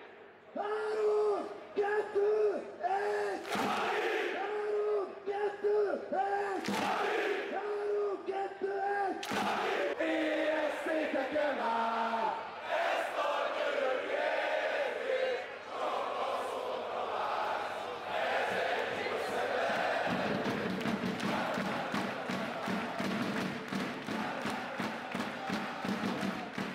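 A large crowd of men chants loudly in unison outdoors.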